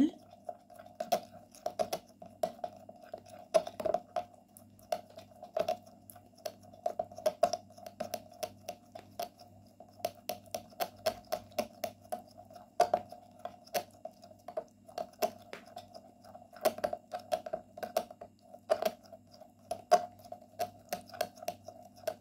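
A metal spoon clinks rapidly against a glass bowl while stirring.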